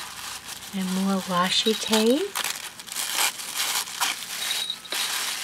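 Paper rustles and crinkles as hands fold it.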